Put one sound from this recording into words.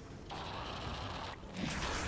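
Blades clash in a fight.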